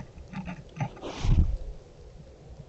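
A deer snorts close by.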